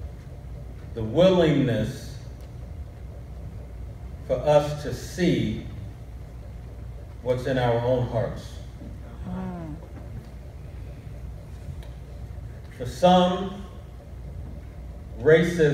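A man speaks slowly and calmly into a microphone, with long pauses, in a room with some echo.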